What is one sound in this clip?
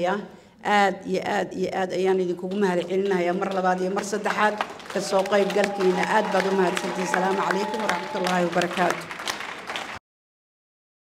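A woman speaks steadily into microphones.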